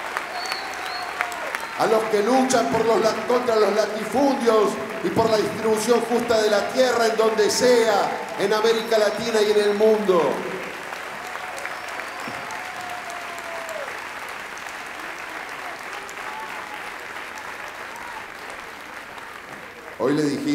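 A crowd claps and cheers in a large hall.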